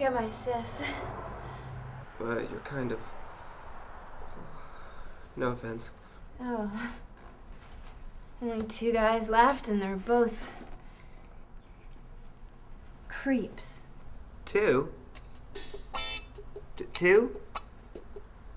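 A woman talks tensely at close range.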